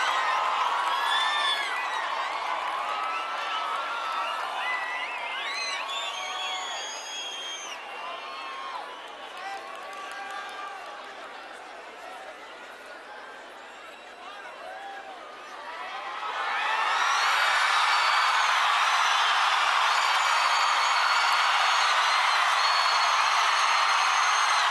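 A large crowd cheers and screams, swelling into a loud roar.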